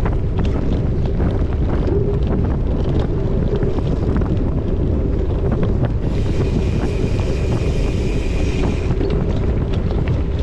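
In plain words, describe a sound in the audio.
Wind buffets a microphone steadily.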